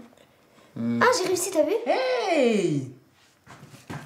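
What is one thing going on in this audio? A young girl speaks excitedly up close.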